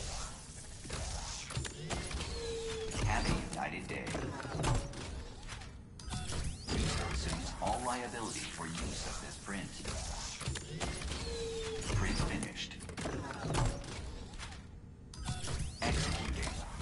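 Metal parts clank and whir as a machine moves.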